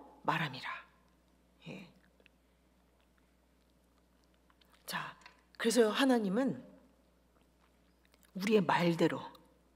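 A woman speaks slowly into a microphone, with long pauses.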